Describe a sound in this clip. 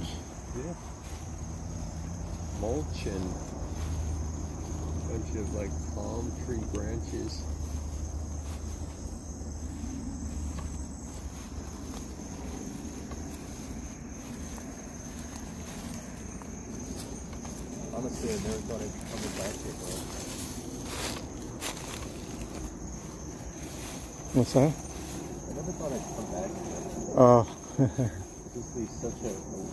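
Footsteps crunch on dry grass and leaves.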